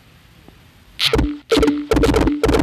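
Small balls clatter and tick in quick bursts as they pour out.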